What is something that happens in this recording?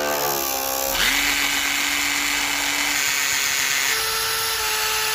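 A cordless drill whirs steadily as it bores through plastic.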